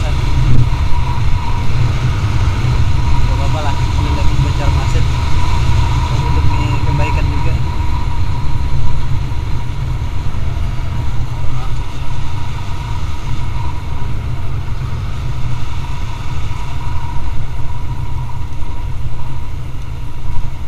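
Wind roars and buffets steadily against the microphone.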